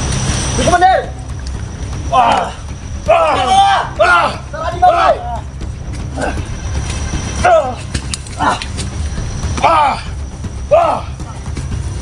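Men shout in short, loud bursts outdoors.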